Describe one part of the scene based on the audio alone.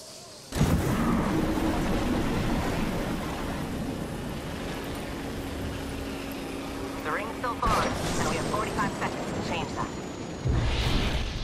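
Air rushes loudly as a character flies through the air.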